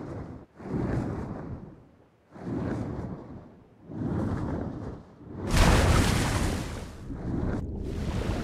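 Water rushes in swelling, repeated waves.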